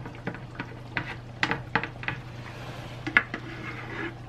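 A spoon scrapes and knocks against a pan while stirring.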